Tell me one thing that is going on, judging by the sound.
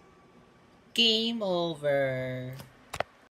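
A short falling video game tune plays.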